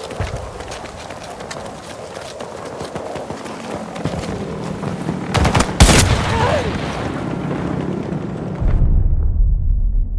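Wind roars in a heavy storm.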